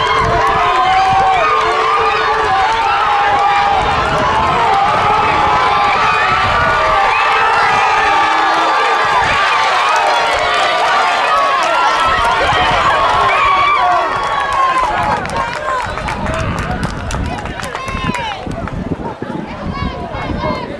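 A crowd of spectators cheers and shouts loudly outdoors.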